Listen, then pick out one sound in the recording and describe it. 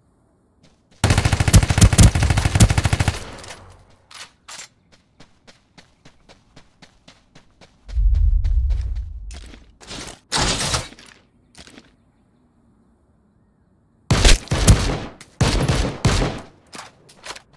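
Rapid gunfire bursts out loudly in short volleys.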